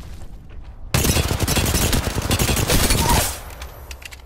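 An automatic rifle fires a rapid burst in a video game.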